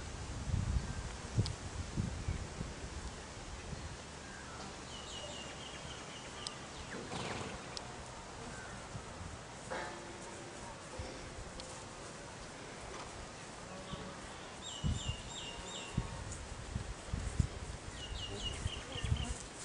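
Hooves thud softly on grass.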